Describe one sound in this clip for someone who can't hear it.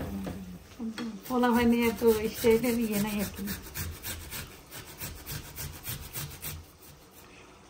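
Ginger scrapes rapidly against a metal grater.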